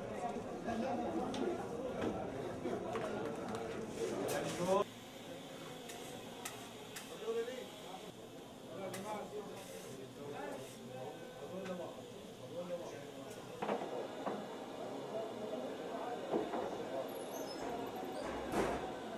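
Metal spatulas clink and scrape against baking trays.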